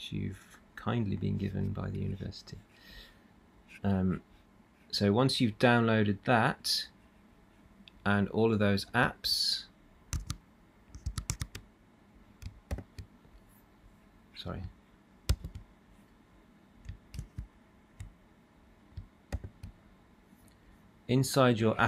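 A man talks calmly and close to a microphone, as if explaining.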